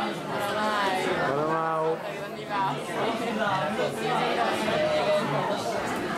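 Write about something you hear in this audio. A young woman talks and laughs close by.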